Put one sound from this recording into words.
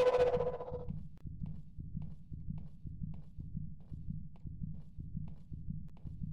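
Footsteps thud steadily on a floor.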